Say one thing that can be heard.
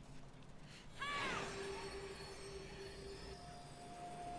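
A bright magical chime rings out and slowly fades.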